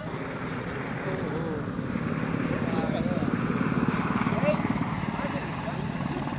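A helicopter flies overhead with a steady thudding rotor.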